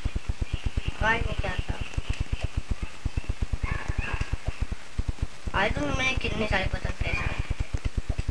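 A boy speaks excitedly into a nearby microphone.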